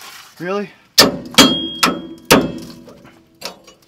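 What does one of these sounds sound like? A metal tool clanks against metal parts up close.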